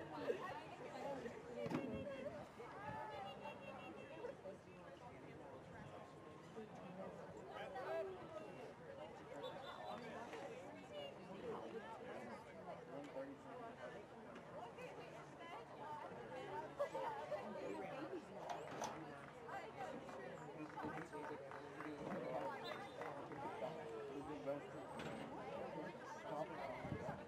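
Spectators talk and call out at a distance, outdoors.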